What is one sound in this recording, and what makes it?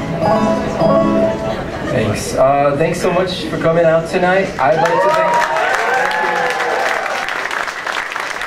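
A banjo is strummed.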